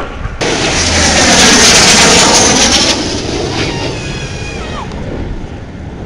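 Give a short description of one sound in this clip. A jet plane roars loudly overhead and fades away.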